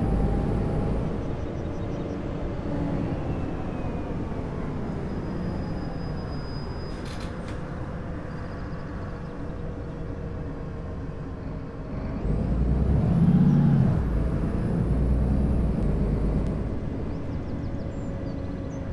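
A bus engine hums steadily, its pitch rising and falling with speed.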